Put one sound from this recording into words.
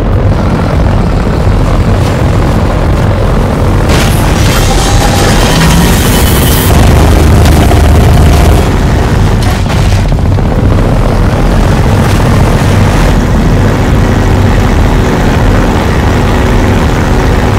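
A boat engine drones steadily at close range.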